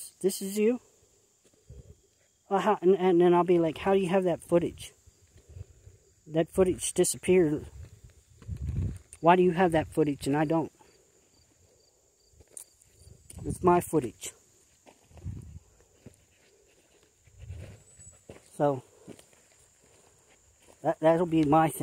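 A middle-aged man talks calmly and close to the microphone, in short bursts with pauses.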